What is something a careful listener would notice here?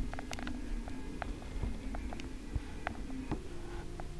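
A needle pokes through fabric with faint ticks.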